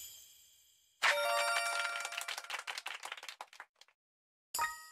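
A bright game jingle chimes for a reward.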